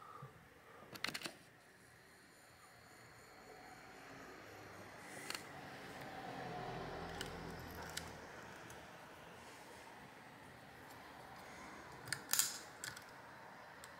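Plastic parts click and tap as a device is handled.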